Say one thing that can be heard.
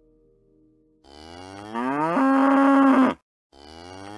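A cow moos loudly, its call rising and then holding steady.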